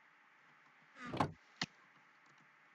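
A wooden chest lid thuds shut.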